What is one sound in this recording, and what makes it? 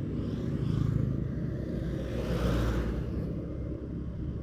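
A truck approaches and roars past.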